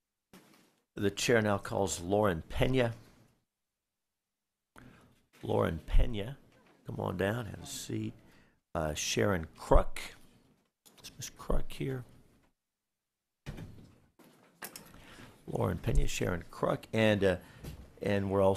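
A man speaks calmly and steadily into a microphone.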